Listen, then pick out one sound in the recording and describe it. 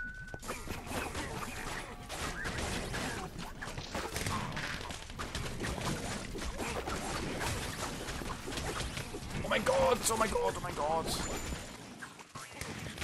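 Game combat sounds clash and zap rapidly.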